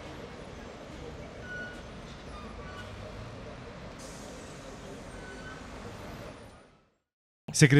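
A busy outdoor street murmurs in the background.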